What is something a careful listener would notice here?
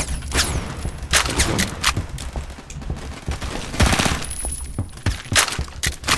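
A rifle fires in short bursts of shots.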